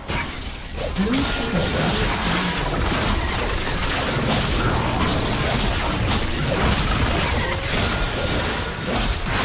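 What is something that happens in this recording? Magic blasts crackle and boom in a fast fight.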